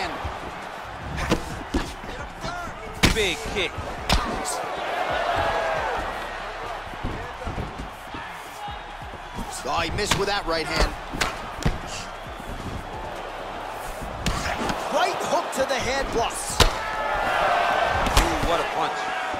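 Kicks and punches land with sharp thuds.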